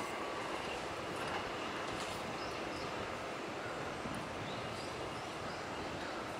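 Train wheels clatter over the rail joints.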